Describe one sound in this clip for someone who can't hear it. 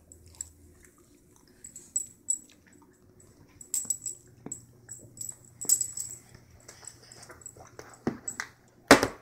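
A baby sucks and gulps softly from a bottle.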